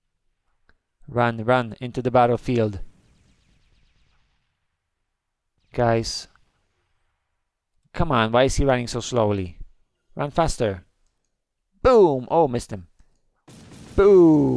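A man talks with animation into a headset microphone, close up.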